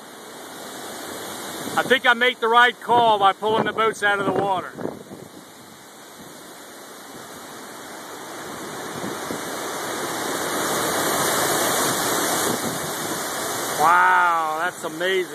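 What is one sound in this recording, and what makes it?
Strong wind roars outdoors, rising in gusts.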